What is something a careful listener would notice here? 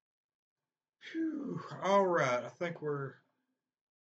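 A man speaks close to a microphone.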